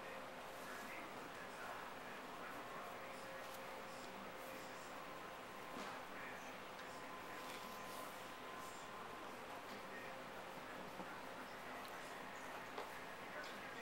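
Small claws scrape and tap lightly on a wooden floor.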